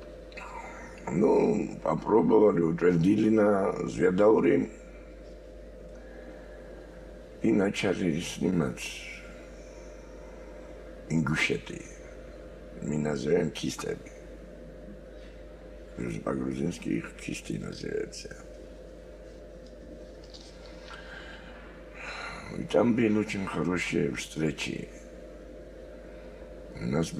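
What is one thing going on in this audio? An elderly man speaks calmly and slowly in a deep voice, close by, with pauses.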